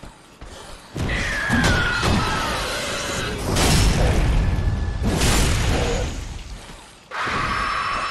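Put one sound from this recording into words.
A creature screeches loudly.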